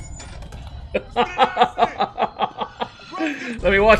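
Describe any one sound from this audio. A man laughs heartily close to a microphone.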